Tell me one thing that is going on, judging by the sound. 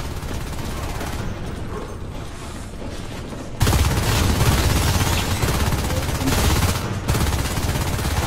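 Footsteps tread on a hard metal floor.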